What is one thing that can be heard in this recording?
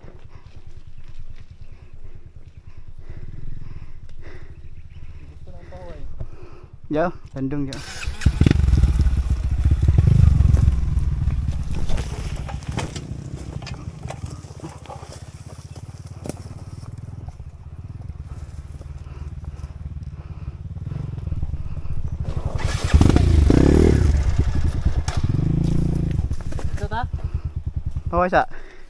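A dirt bike engine putters and revs close by.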